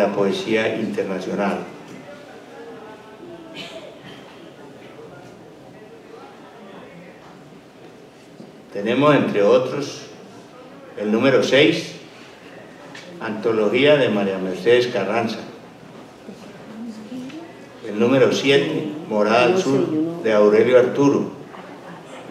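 A middle-aged man reads aloud slowly into a microphone, with pauses.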